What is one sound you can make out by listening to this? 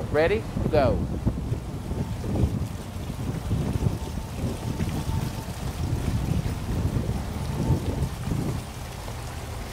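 Water splashes and laps in a pool.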